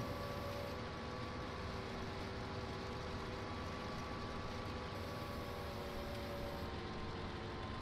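A combine harvester's header whirs as it cuts through crops.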